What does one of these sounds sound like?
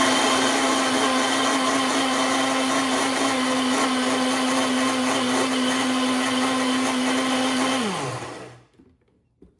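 A blender whirs loudly and steadily, then winds down.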